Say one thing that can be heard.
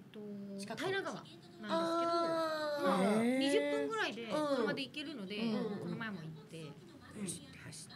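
A second woman answers calmly into a microphone, close by.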